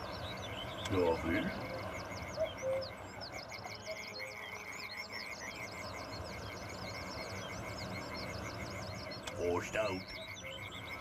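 Bison low with deep grunts.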